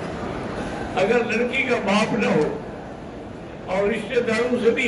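An elderly man speaks slowly and solemnly into a microphone in an echoing hall.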